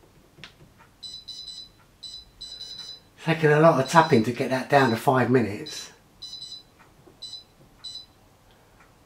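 An appliance's touch panel beeps in short, high bursts as buttons are pressed.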